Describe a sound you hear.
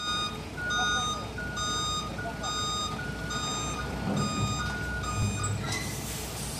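A reversing alarm beeps steadily.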